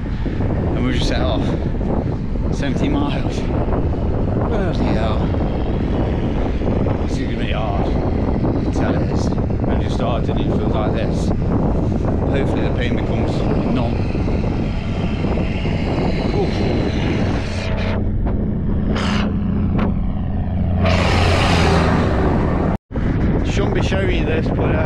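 Strong wind rumbles against the microphone.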